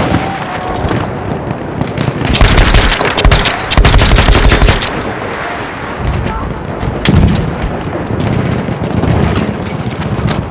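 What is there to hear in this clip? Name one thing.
Explosions boom and rumble in the distance.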